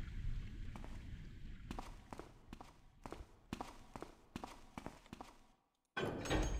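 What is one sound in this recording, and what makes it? Footsteps tread at an even pace on a hard floor.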